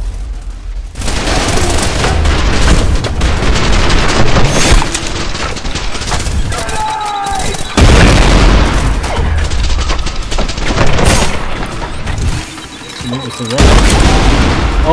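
Rapid gunfire rattles loudly and echoes.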